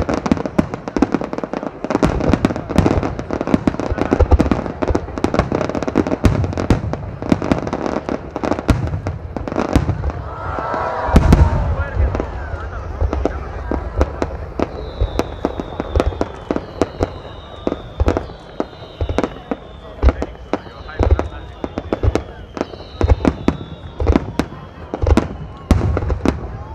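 Firework stars crackle and pop.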